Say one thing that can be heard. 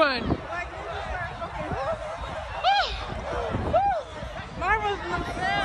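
A crowd of young people shouts and cheers outdoors.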